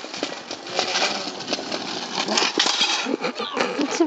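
A scooter clatters onto the ground.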